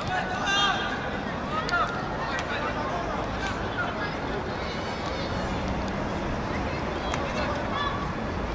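Spectators chatter and call out from the sidelines.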